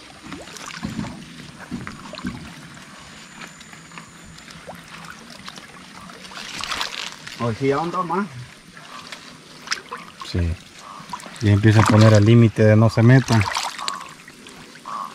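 Water sloshes and splashes as a man wades through it.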